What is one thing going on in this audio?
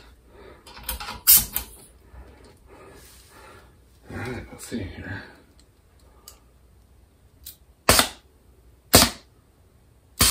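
Metal fittings click and clack as they are handled.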